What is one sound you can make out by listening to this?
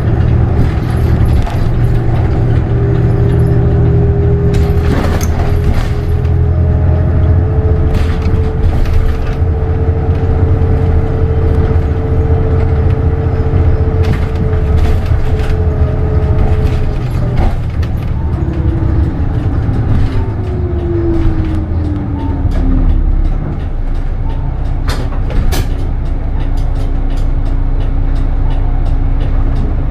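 A bus interior rattles and clicks over the road.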